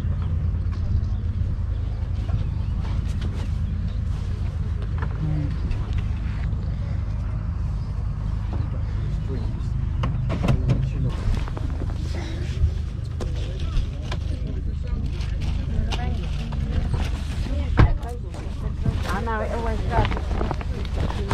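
Wind rumbles low and steadily across the microphone outdoors.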